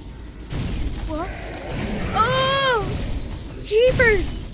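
A young boy exclaims in surprise, his voice rising and falling.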